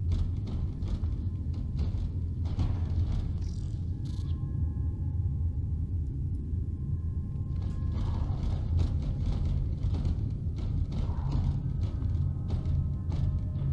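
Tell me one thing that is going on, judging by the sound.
Heavy armoured footsteps thud and clank on a metal floor.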